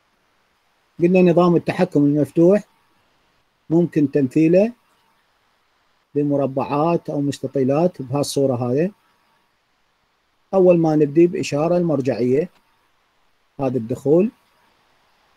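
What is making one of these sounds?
A man speaks calmly and steadily through a microphone, in short phrases with pauses.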